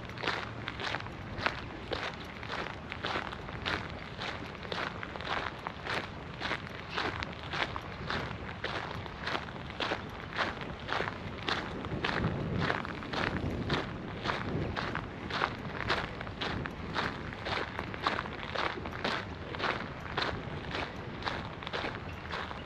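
Wind blows over open ground.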